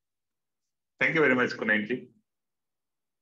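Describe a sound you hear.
A man speaks cheerfully through an online call.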